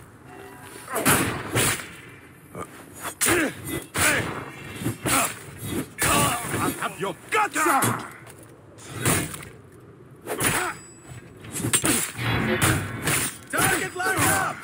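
Blades clash and strike repeatedly in a fight.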